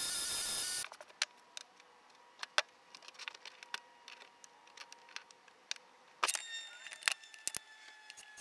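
Metal tools clatter onto a table.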